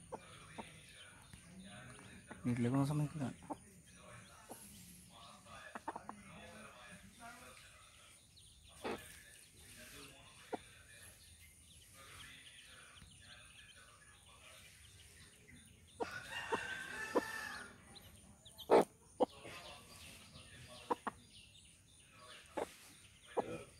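A hen pecks at loose soil with soft taps.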